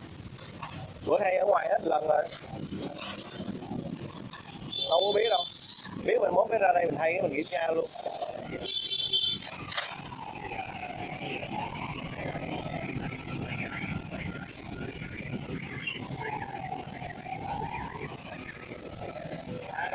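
Metal tools clink and rattle against a scooter wheel.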